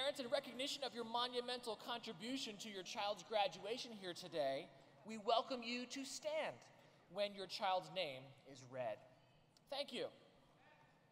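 A middle-aged man speaks calmly into a microphone over a loudspeaker in a large echoing hall.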